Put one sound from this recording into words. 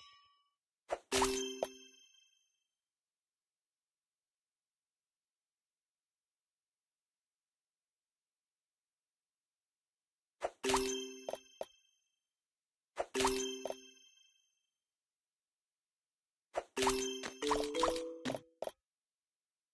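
Game chimes and pops ring out as pieces match and clear.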